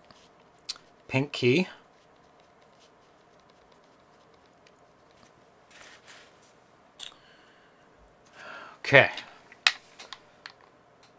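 A man speaks casually and briefly, close to a microphone.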